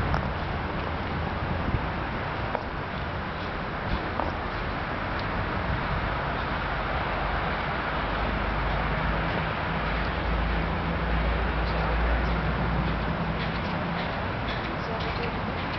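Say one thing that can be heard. Footsteps scuff on paving stones.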